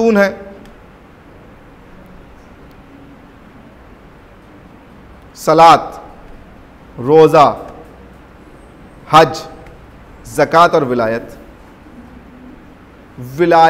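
A man speaks calmly into a nearby microphone, in short phrases with pauses.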